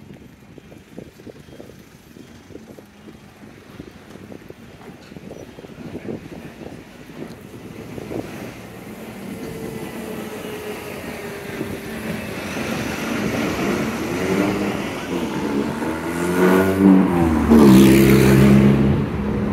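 Traffic rumbles along a street outdoors.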